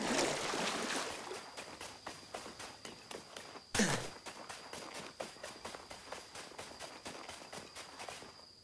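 Footsteps patter quickly on soft ground.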